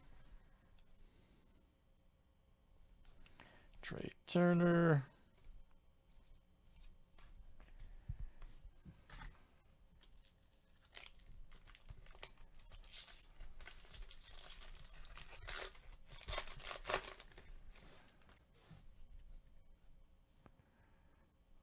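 Trading cards rustle and slide as hands shuffle through them.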